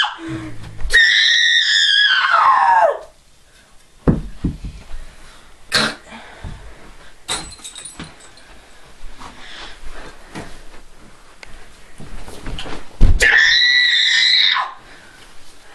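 A teenage boy lets out long, high-pitched squeals.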